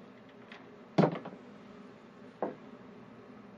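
A tool knocks as it is set down on a wooden table.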